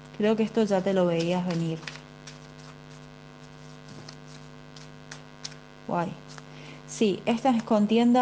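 A woman speaks close to a microphone, with pauses.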